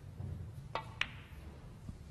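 Snooker balls knock together with a sharp clack.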